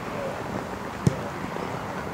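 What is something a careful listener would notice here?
A ball is kicked with a sharp thud.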